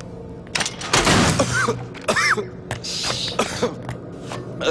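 A young man coughs hoarsely.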